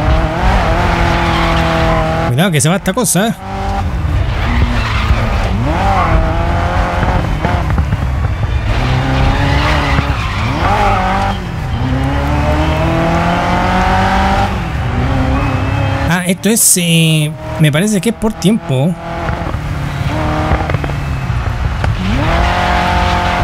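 A racing car engine roars, revving up and dropping as gears shift.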